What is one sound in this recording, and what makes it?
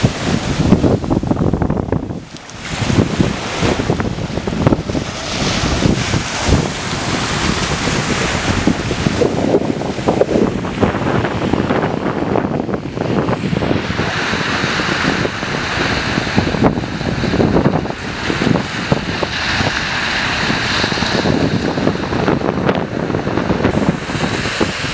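Small waves wash up on a sandy shore.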